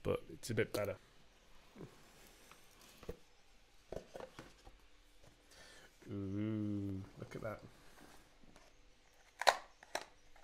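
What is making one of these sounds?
Cardboard packaging rustles and taps as a box is opened.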